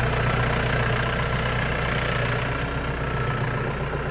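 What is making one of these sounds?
A rotary tiller churns through dry soil.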